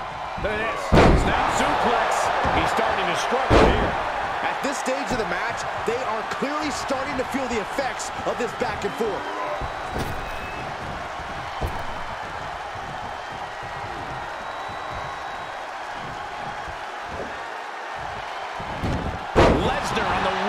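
Heavy bodies thud and slam onto a wrestling mat.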